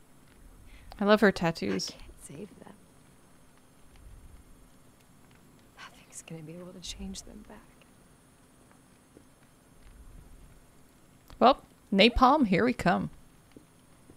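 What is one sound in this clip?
A young woman speaks quietly and sadly.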